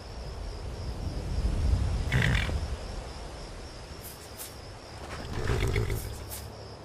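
A horse's hooves thud slowly on soft forest ground.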